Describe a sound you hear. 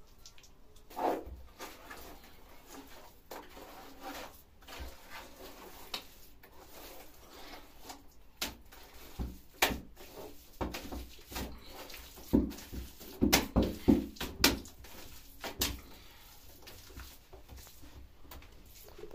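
Wet mortar squelches and slaps as hands scoop it from a metal bowl.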